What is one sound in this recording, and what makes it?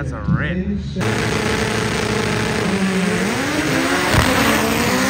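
A drag car's engine roars loudly as it revs and pulls away.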